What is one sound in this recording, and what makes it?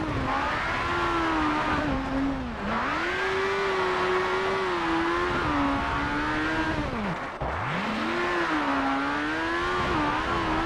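A rally car's engine roars and revs up and down through gear changes.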